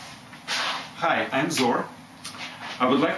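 An older man speaks calmly, close to the microphone.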